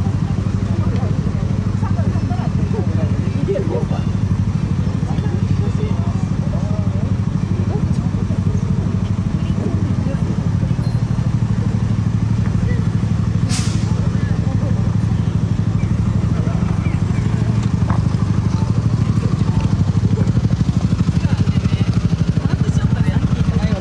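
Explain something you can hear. Traffic hums steadily outdoors in a city.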